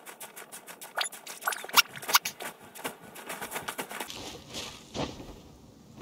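A game character's hands scrape and thud on rock while climbing.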